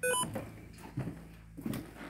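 Footsteps creak on wooden stairs.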